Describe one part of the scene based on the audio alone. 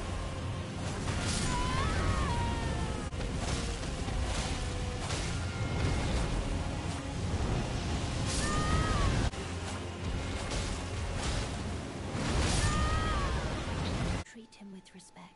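A huge dragon roars and shrieks.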